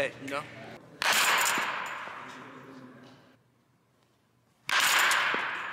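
A baseball bat cracks against a ball, ringing out in a large echoing hall.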